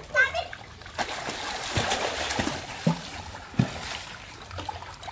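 Water splashes as children jump and swim in a pool.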